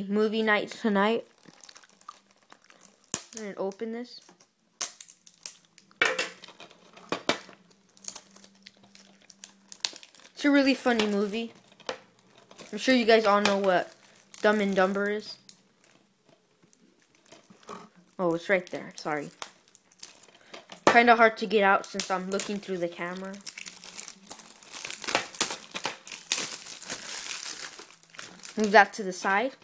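Hands handle a plastic disc case with light clicks and taps.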